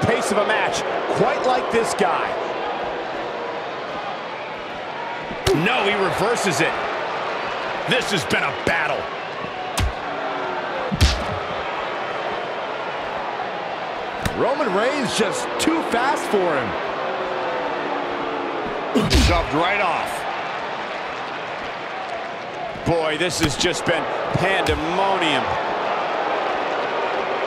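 Punches and body slams thud in a fight.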